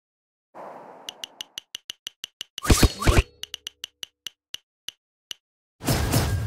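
Quick chiming ticks sound as a game card wheel spins.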